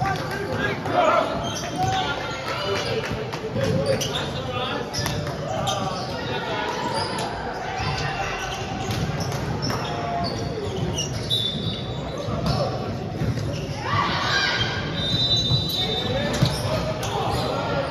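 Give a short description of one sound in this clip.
A ball thumps against hands.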